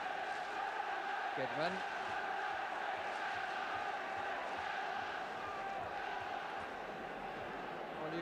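A large crowd murmurs and roars steadily in an open stadium.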